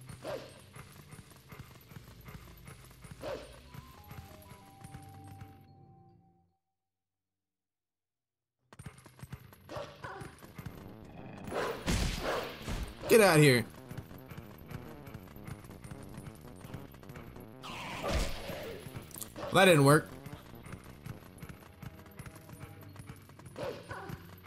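Horse hooves gallop over soft ground.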